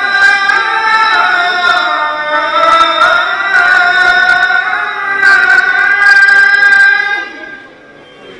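A man chants loudly through loudspeakers, echoing across a large open space.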